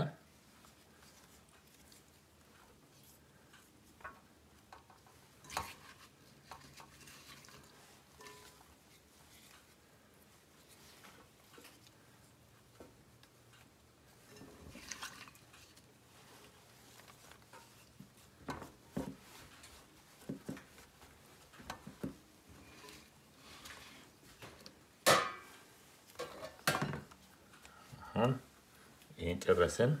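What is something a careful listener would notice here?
Hands lay thin potato slices with soft taps and rustles.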